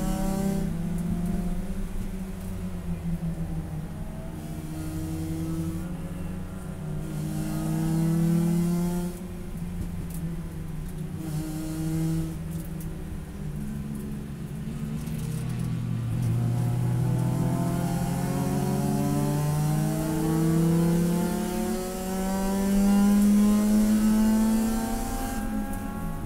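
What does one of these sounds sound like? A race car engine roars loudly from inside the cabin, revving up and down through the gears.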